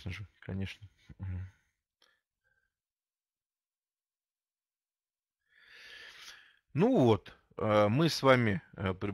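A middle-aged man speaks calmly through an online call, with pauses.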